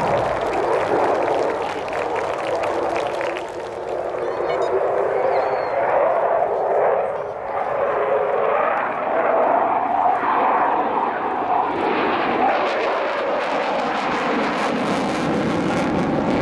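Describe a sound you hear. A jet engine roars loudly overhead, rising and falling as the aircraft turns.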